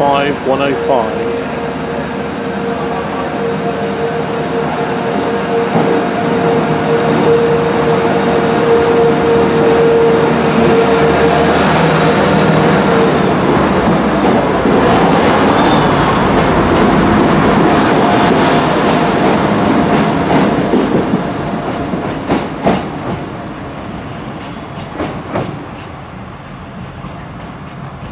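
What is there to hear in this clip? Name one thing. A diesel train rumbles loudly past at speed, then fades into the distance.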